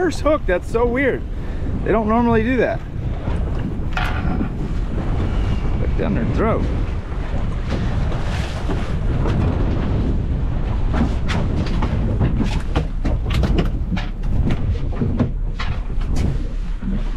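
Wind buffets loudly outdoors on open water.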